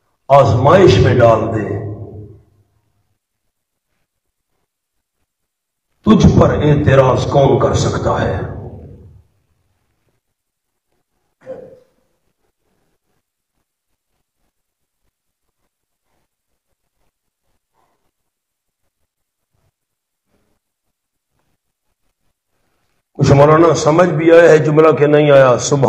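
A man speaks into a microphone in an animated, preaching voice.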